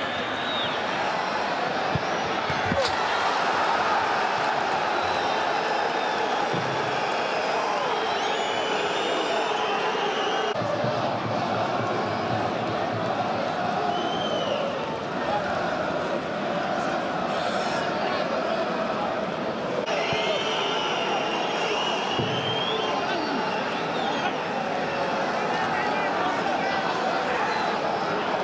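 Fans whistle shrilly from the stands.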